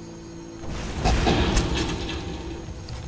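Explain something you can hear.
A fiery explosion bursts with a loud roar.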